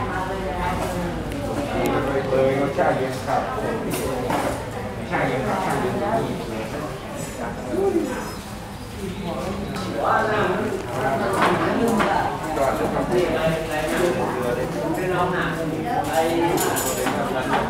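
Metal utensils clink against dishes.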